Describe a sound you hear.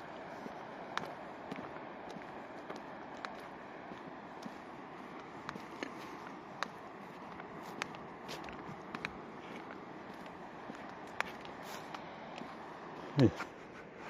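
Footsteps crunch along a dirt path.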